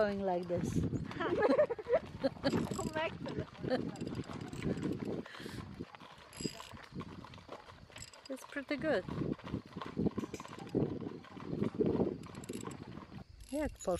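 Horse hooves clop on a road, moving away.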